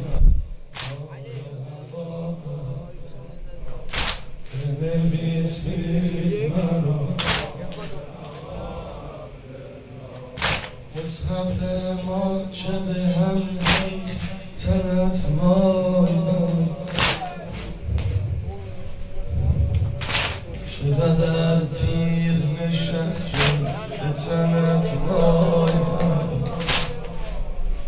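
A crowd of men beat their chests in rhythm.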